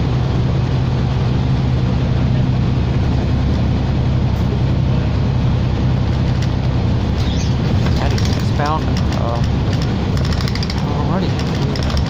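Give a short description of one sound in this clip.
A bus engine drones steadily as the bus drives along.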